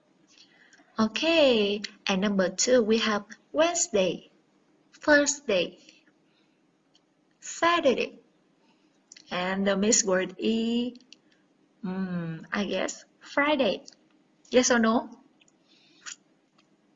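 A young woman speaks clearly and slowly into a microphone, pausing between phrases.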